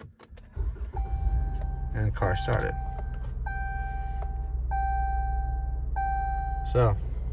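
A car's warning chime beeps at a steady, even pace.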